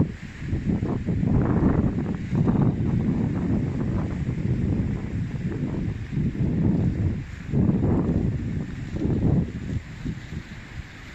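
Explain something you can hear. Strong wind gusts roar and buffet outdoors, then ease off.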